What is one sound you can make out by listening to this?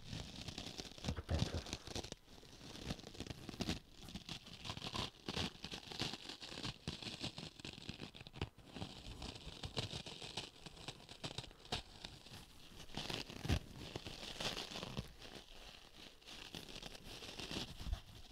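A man whispers softly close to the microphone.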